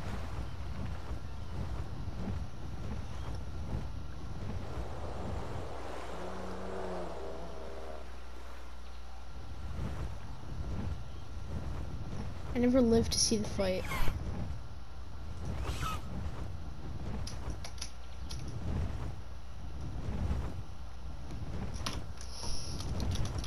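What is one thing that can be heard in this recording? A large bird beats its wings with heavy, repeated whooshes.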